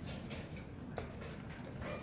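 A chess clock button clicks.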